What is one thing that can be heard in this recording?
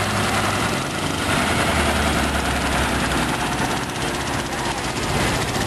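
A motorcycle engine putters along the road.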